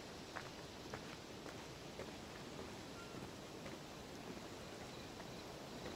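A fire crackles close by.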